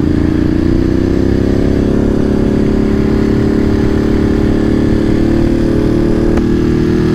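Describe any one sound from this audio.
Wind rumbles loudly against the rider.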